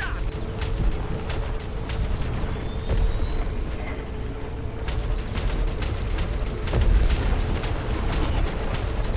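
A racing engine roars with a deep, steady rumble.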